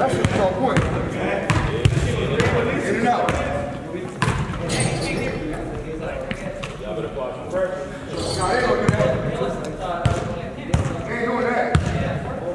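Young men talk and call out to each other in an echoing hall.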